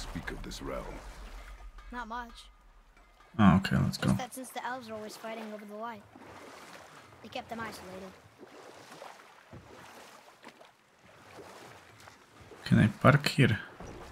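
Oars splash softly in water as a boat is rowed.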